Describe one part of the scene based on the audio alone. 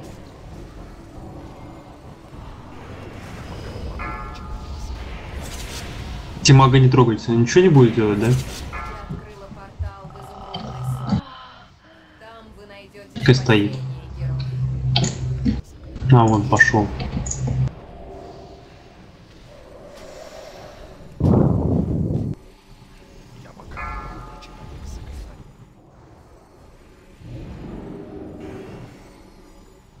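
Magic blasts and battle effects crackle and boom.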